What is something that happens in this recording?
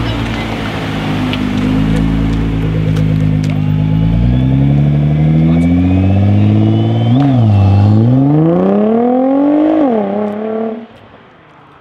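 A Nissan GT-R's twin-turbo V6 accelerates hard through the gears and fades away.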